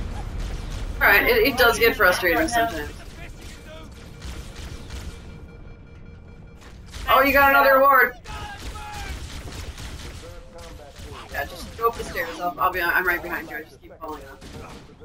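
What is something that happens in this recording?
Young men talk with animation, close to a microphone.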